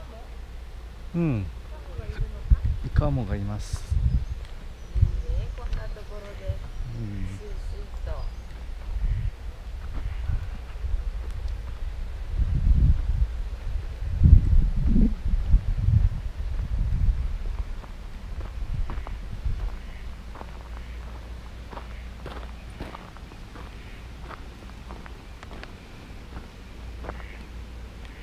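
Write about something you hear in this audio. Wind rumbles in gusts outdoors.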